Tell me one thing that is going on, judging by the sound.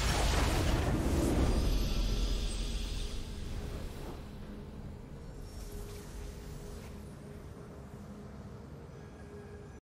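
A triumphant game fanfare plays and fades.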